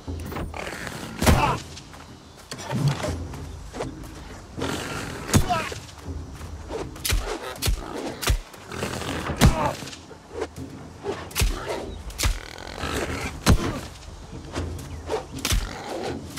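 A sword strikes a boar with sharp hits.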